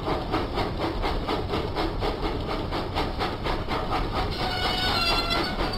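Train wheels rumble along the rails.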